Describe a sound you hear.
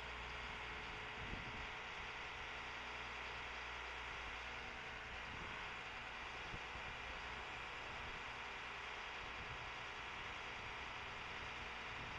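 A lift's motor hums steadily as the boom lowers.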